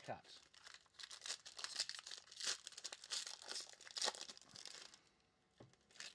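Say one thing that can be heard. Foil wrapping crinkles and tears as a pack is opened.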